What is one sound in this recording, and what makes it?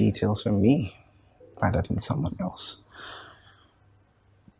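A man speaks quietly and seriously close by.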